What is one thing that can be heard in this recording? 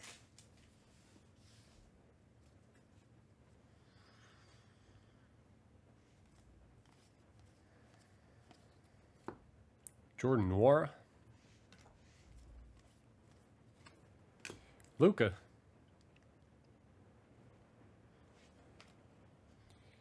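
A stack of trading cards is tapped and shuffled.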